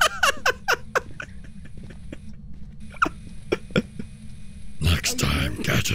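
A man laughs close to a microphone.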